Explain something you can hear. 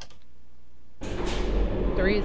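An elevator rumbles loudly as it starts moving.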